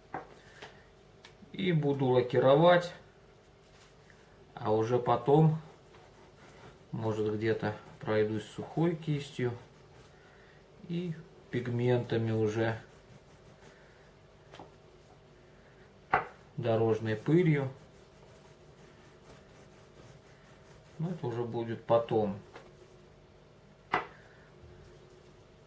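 Rubber tank tracks rustle and tap softly on a table as hands handle them.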